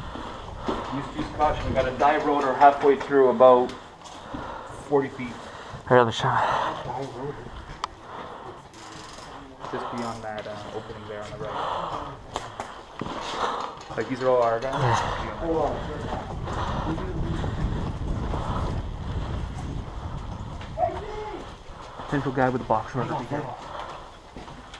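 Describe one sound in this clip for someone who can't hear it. A man speaks in short, urgent bursts close by.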